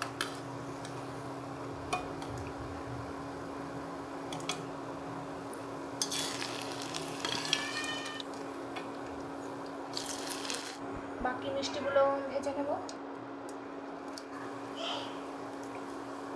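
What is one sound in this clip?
Oil sizzles and bubbles steadily in a pan.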